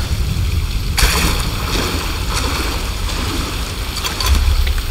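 Water splashes and churns.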